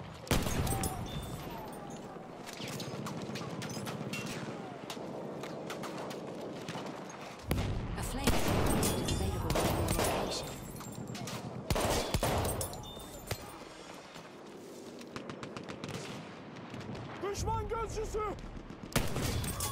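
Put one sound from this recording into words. A bolt-action rifle fires sharp shots.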